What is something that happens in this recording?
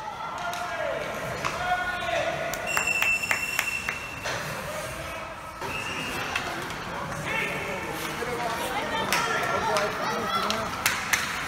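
Skate blades scrape and hiss across ice.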